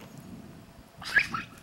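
A little girl shrieks outdoors.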